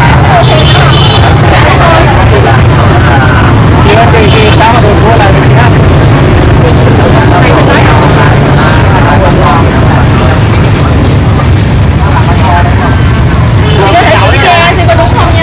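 A plastic bag rustles as a woman handles it.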